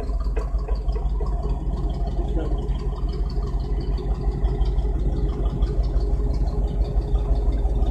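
A car engine idles nearby with a low steady rumble.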